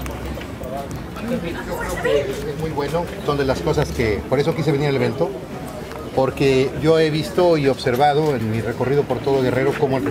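A middle-aged man speaks calmly into nearby microphones.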